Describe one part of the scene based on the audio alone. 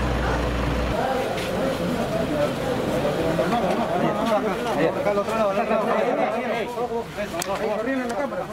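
Several men talk over one another with animation close by.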